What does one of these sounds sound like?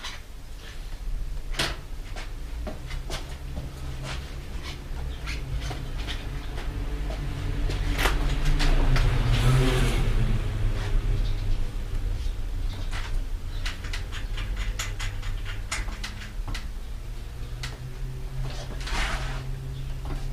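Metal bicycle parts click and clank as a man works on a bike.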